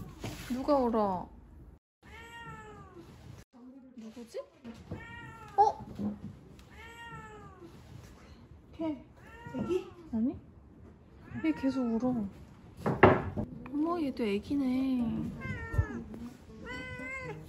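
A kitten meows loudly and repeatedly nearby.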